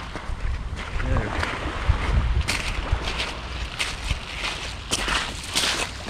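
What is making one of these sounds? Footsteps crunch on loose pebbles.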